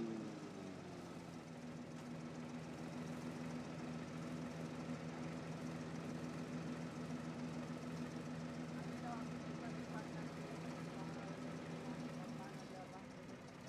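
A large engine idles with a steady, low drone.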